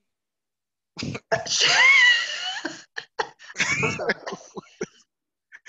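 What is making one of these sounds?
A young woman laughs and talks over an online call.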